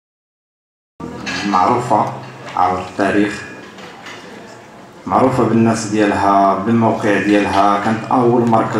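A man speaks into a microphone, heard through loudspeakers in a large room.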